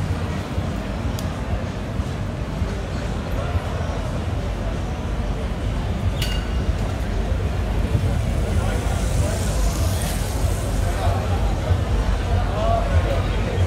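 A crowd of men and women talks nearby.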